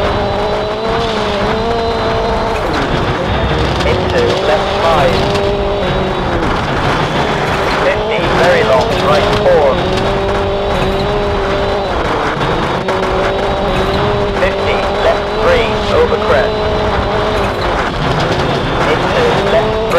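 A rally car engine revs hard, rising and falling as gears shift.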